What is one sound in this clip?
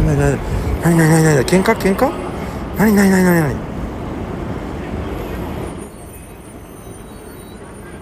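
A car drives slowly past nearby.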